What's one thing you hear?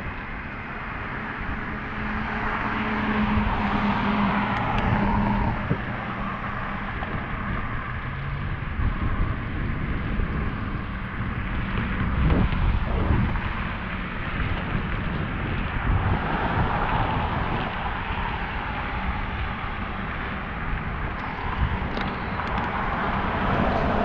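Bicycle tyres roll on pavement.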